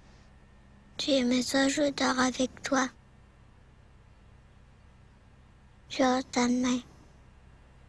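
A young boy speaks softly nearby.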